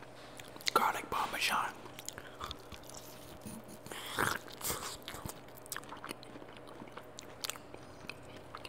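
A man chews crunchy food loudly and wetly close to a microphone.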